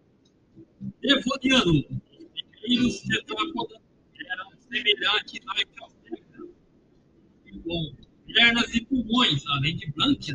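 A middle-aged man speaks close to a microphone, calmly with pauses.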